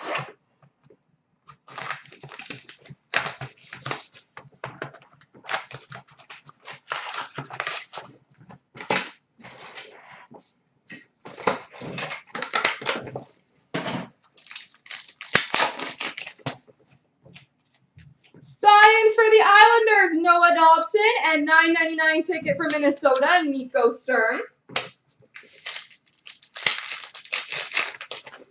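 Hands shuffle and tap small cardboard boxes of cards, close by.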